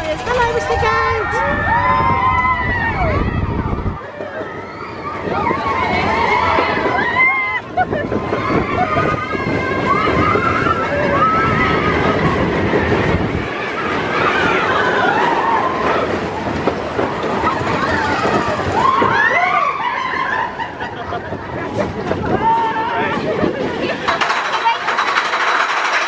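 Wind rushes loudly past on a fast ride.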